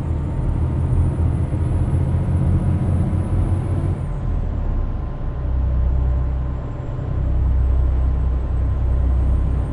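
Tyres roll on a road surface.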